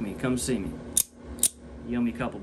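A utility knife blade clicks out.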